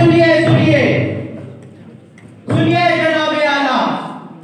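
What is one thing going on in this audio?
A hand drum is beaten.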